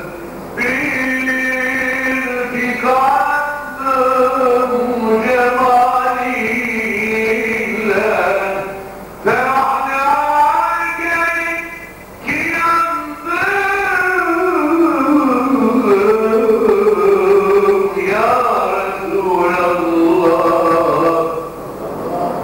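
A man chants in a long, wavering melody through a microphone.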